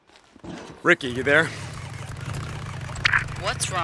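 A motorcycle engine starts and rumbles steadily.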